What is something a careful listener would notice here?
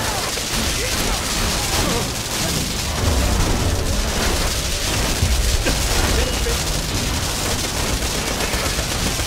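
Gunfire rattles and booms in a video game.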